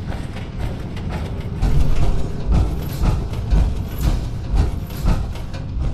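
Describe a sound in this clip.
Heavy metal footsteps thud and clank steadily on a hard floor.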